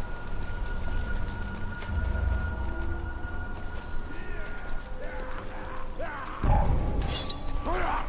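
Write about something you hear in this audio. Footsteps rustle through grass at a run.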